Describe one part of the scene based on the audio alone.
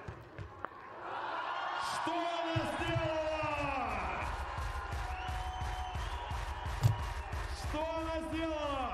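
A large crowd cheers and applauds in a big echoing arena.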